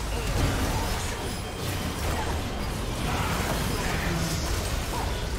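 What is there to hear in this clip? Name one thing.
Spell effects crackle and burst during a fight.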